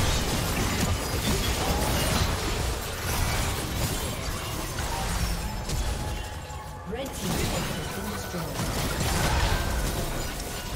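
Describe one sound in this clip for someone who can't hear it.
Fantasy battle sound effects of spells and blows clash in quick bursts.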